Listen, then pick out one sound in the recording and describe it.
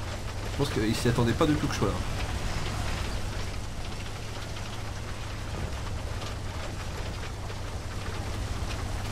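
A tank engine rumbles low and steady.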